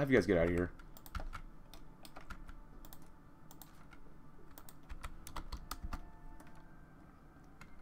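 Soft clicks from a game interface tick now and then.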